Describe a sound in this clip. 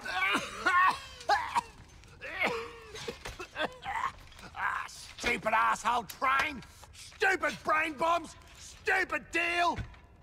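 A man speaks hoarsely and angrily, close by.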